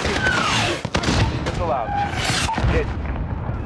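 A large explosion booms nearby.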